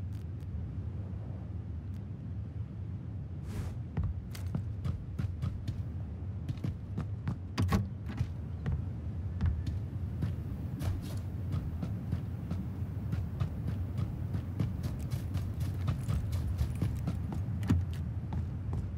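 Footsteps thud steadily on wooden floors.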